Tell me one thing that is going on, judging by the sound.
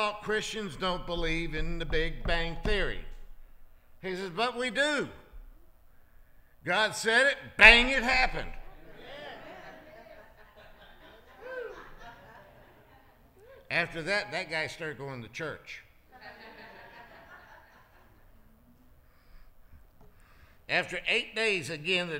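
A middle-aged man speaks calmly into a microphone in an echoing hall, with pauses.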